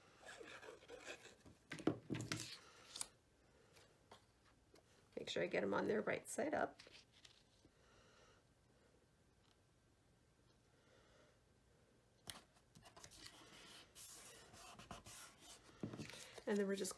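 Paper rustles and slides as it is handled close by.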